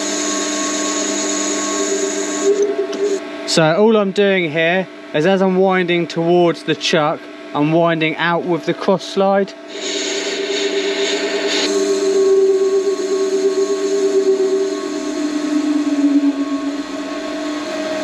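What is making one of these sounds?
A lathe motor hums and whines steadily.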